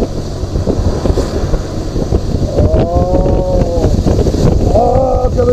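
A motorcycle engine hums and revs as it rides.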